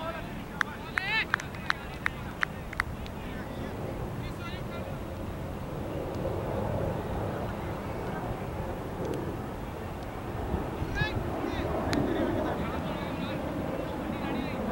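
Wind rumbles steadily across an open field.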